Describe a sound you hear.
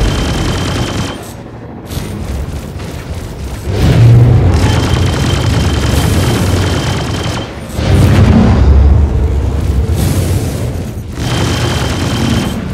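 A spaceship engine rumbles and roars, surging louder at times.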